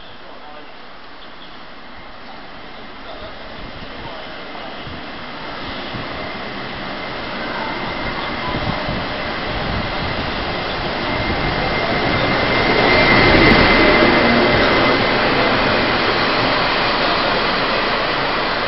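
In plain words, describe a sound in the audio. A train approaches, rumbling louder and louder, and rolls past close by.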